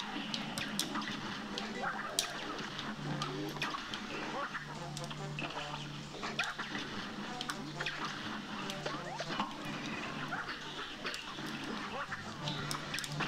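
Cartoon shots pop and crackle rapidly.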